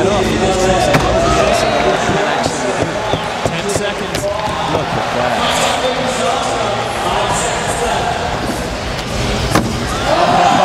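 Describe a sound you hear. A skateboard clacks sharply against a ledge.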